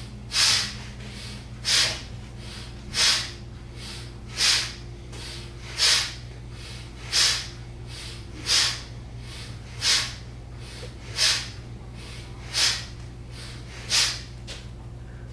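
A man breathes out sharply in a steady rhythm.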